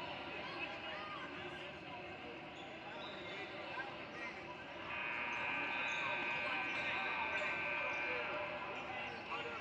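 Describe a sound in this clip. A crowd chatters and murmurs in a large echoing hall.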